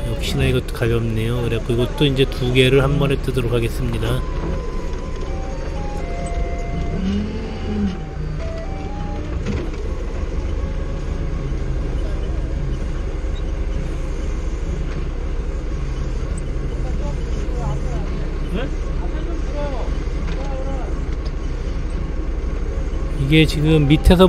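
A forklift engine hums steadily.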